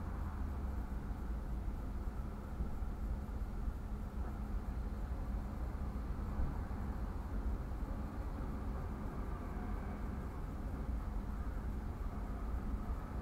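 A car engine idles steadily from inside the car.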